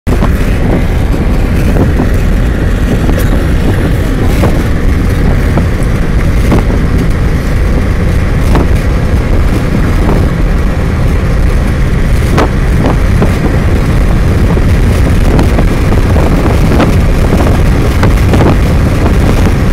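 A vehicle drives steadily along a road, with a loud low rumble.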